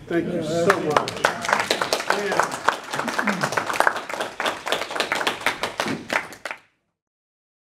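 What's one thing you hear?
A man speaks to an audience, heard from a distance.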